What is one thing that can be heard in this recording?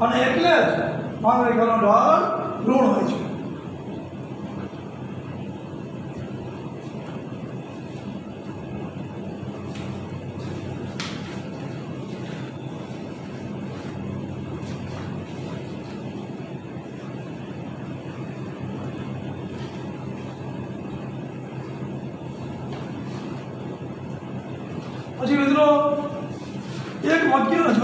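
A middle-aged man speaks calmly, close by in a room.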